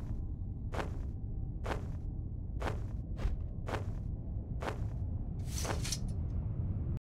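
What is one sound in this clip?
Large wings flap with steady, whooshing beats.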